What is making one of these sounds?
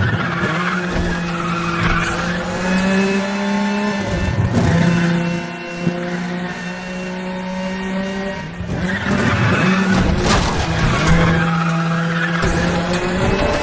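Tyres screech on asphalt through the bends.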